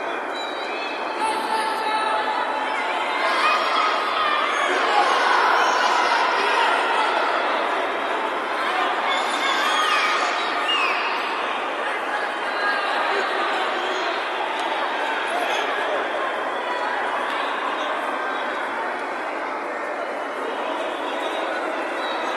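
A large crowd murmurs and calls out in a big echoing hall.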